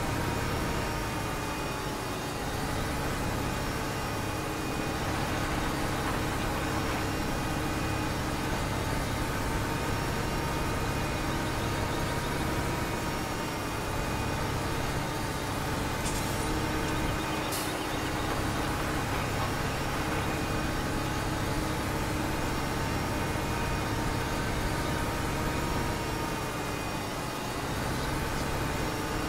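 A tractor engine hums steadily, rising and falling slightly in pitch.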